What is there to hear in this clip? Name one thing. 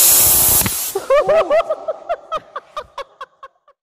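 A young man laughs loudly in bursts.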